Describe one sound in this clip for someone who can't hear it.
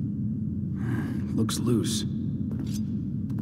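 A man murmurs a few words quietly.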